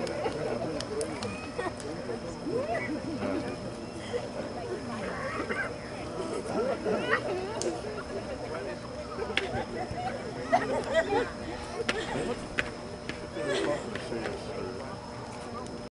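A crowd of young men talk and call out at once outdoors.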